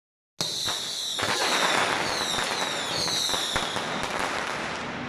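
Firecrackers bang in rapid bursts.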